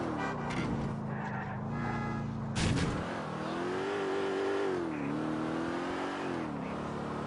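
A car engine hums steadily, rising and falling in pitch as it drives.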